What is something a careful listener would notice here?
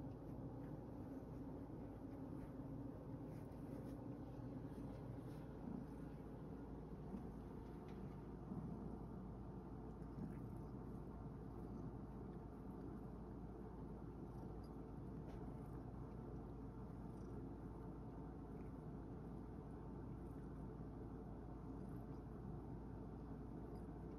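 A cat purrs steadily up close.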